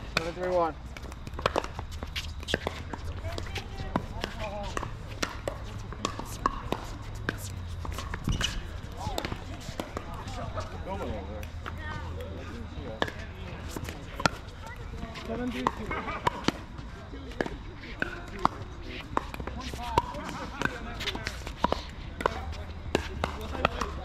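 Paddles pop sharply against a plastic ball, over and over.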